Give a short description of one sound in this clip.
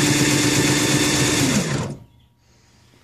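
A power drill whirs loudly, then winds down.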